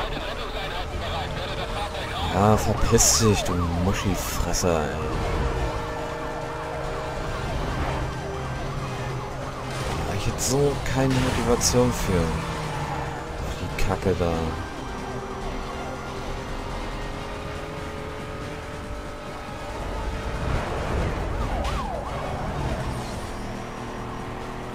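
A racing car engine roars at high speed.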